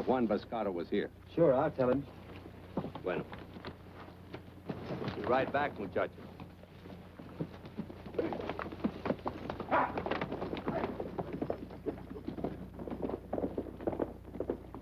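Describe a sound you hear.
Horses' hooves clatter and shuffle on dry ground.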